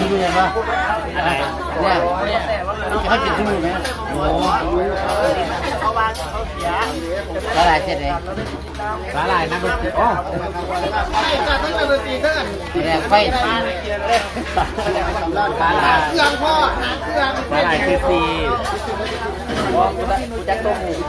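Several people chatter in the background outdoors.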